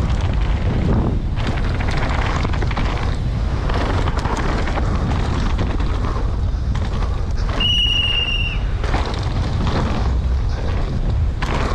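Bicycle tyres skid and crunch over loose dirt.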